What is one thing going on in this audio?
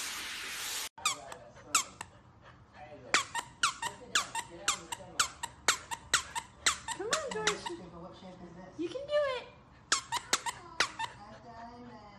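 A puppy yaps in short, quick barks.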